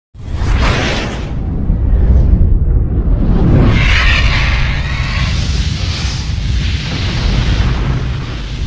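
Flames roar and whoosh past.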